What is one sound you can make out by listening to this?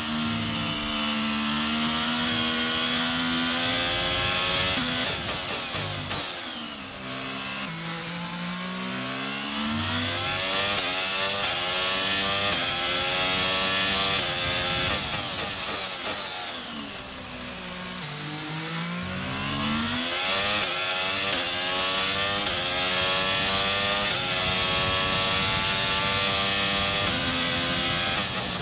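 A racing car engine screams at high revs, dropping in pitch as it brakes and shifts down, then climbing again as it speeds up.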